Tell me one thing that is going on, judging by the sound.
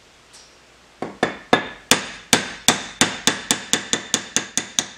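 A hammer strikes a metal punch in quick, repeated blows.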